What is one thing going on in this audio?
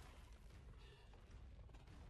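A creature breathes fire with a roaring whoosh.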